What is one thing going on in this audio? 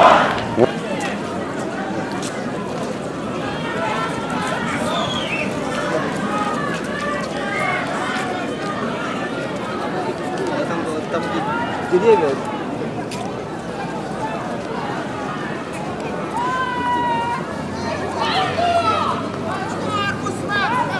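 A crowd of men and women talks at once outdoors.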